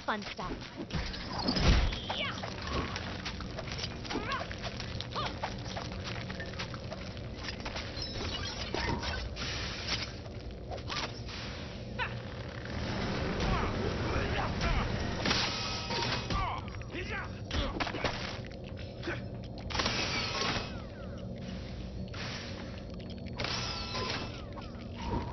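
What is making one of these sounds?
Game blasts and hits clatter and crash in sharp bursts.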